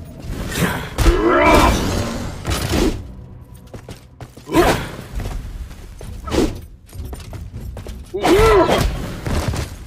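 Blows land with heavy thuds and crunches.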